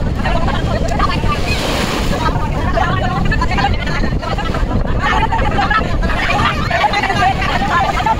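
Waves wash and splash.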